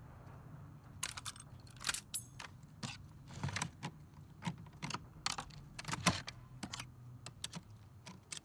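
Metal parts of a rifle click and clack as they are fitted together.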